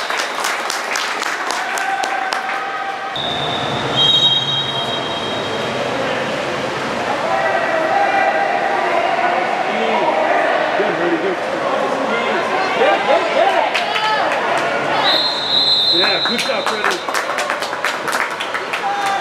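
Water splashes as swimmers thrash in a pool.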